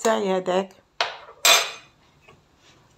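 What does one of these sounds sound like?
A metal spoon taps against a pan.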